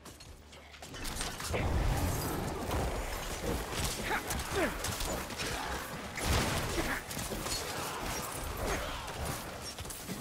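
Magic blasts and impacts crash and whoosh in quick succession.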